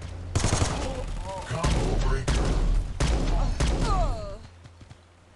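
Rapid gunfire bursts out in loud, sharp cracks.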